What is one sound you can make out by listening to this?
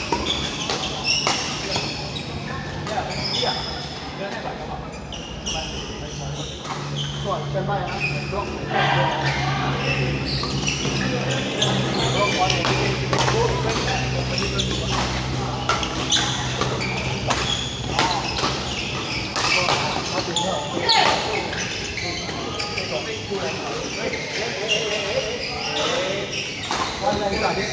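Sports shoes squeak on a court floor.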